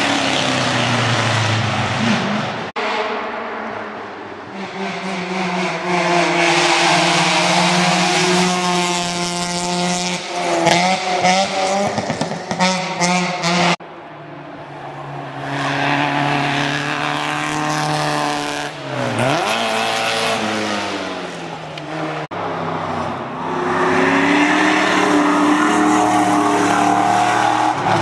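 A racing car engine roars loudly, rising and falling in pitch as the car revs and shifts gears.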